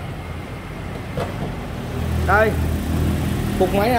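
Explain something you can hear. A car hood latch clicks and the hood creaks open.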